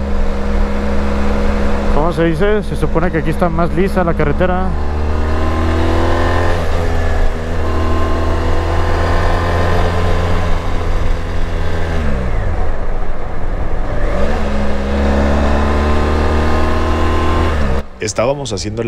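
A motorcycle engine hums steadily, its pitch dropping and rising as the rider shifts gears.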